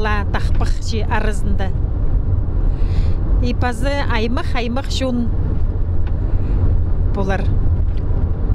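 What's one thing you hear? A middle-aged woman speaks with animation into a close microphone.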